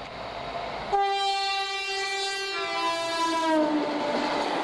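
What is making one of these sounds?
A diesel locomotive's horn blares loudly and drops in pitch as it passes.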